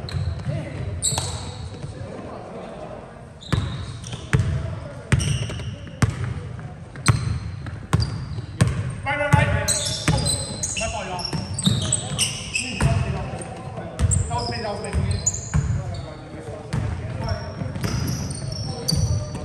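Sneakers squeak sharply on the floor.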